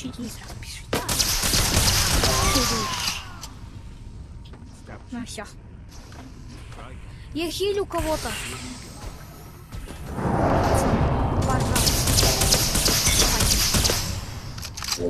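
Loud energy blasts roar and crackle.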